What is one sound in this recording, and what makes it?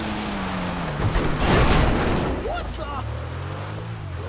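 Tyres skid on snow as a car slides sideways.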